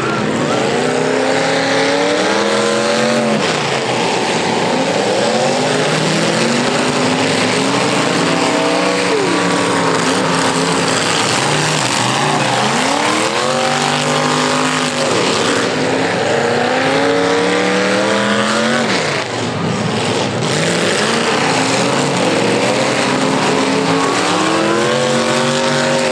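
Car engines roar and rev up and down loudly.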